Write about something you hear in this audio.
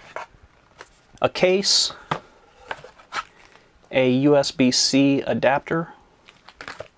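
Packaging rustles and scrapes as hands handle it.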